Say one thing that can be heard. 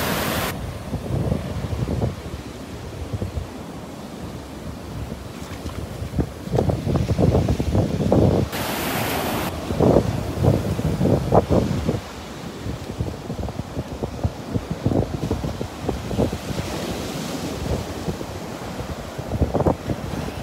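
Wind blows in gusts across the microphone.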